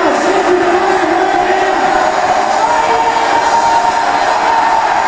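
Music plays loudly through loudspeakers in an echoing hall.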